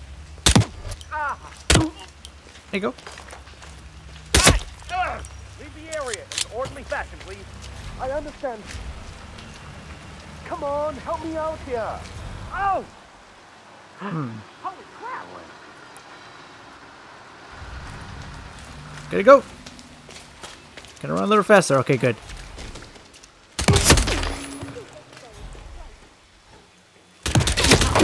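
Gunshots ring out in sharp bursts.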